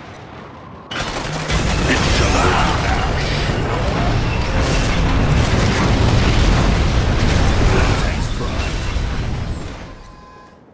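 Explosions rumble heavily.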